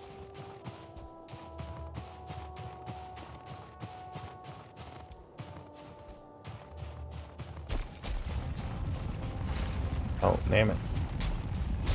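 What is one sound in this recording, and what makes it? Footsteps crunch through snow at a steady pace.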